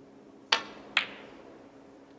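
Snooker balls knock together with a click.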